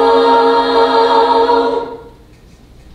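A large choir of young women sings a held chord in a hall.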